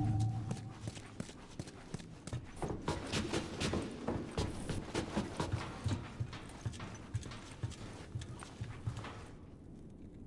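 Footsteps thud quickly up wooden stairs.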